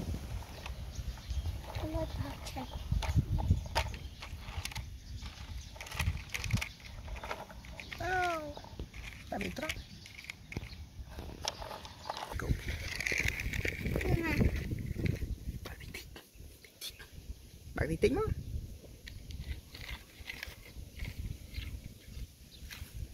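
Plastic toy trucks clack and rattle as small hands move them.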